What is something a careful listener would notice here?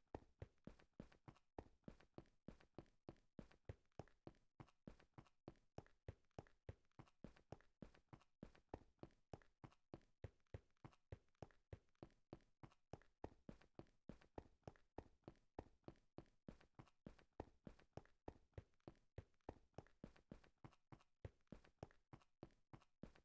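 Quick footsteps tap steadily on stone.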